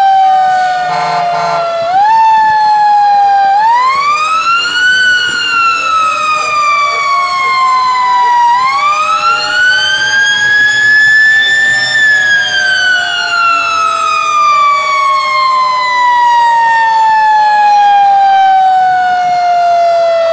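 A fire engine siren wails close by, rising and falling slowly.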